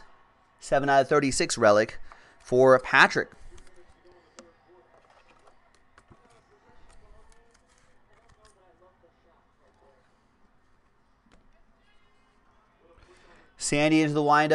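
Trading cards rustle and tap as they are handled.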